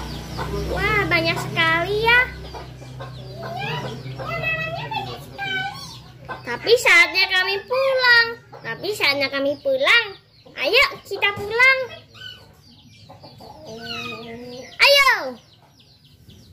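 A young woman speaks close by in a high, squeaky, playful puppet voice.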